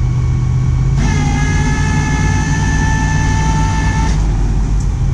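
A winch whines as it pulls a car onto a tow truck.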